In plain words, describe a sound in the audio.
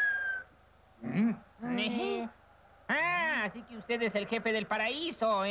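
A young man speaks in a high, lively cartoon voice.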